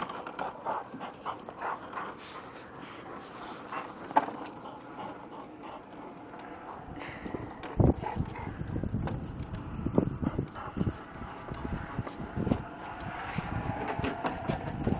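Dogs pant and sniff close by.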